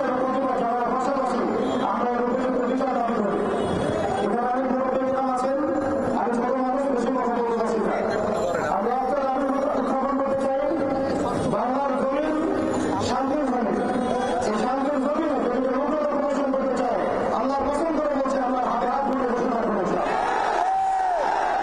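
A man chants loudly and with passion into a microphone, heard through loudspeakers outdoors.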